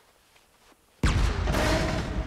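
An explosion booms loudly and rumbles.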